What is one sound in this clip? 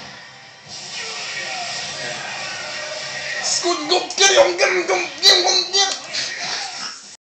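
Video game fighting sounds and effects play from a television speaker.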